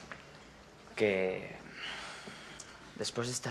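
A young woman speaks in a questioning tone, close by.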